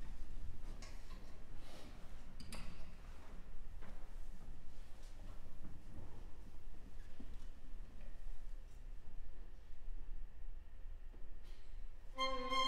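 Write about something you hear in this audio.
Strings play quietly in a small ensemble.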